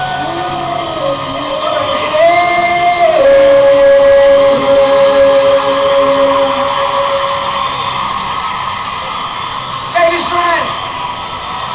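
A man sings loudly into a microphone over a band, heard from a concert crowd.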